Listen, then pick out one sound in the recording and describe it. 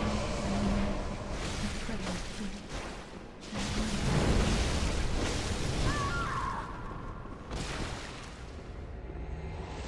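Blades swish and clash in a fast fight.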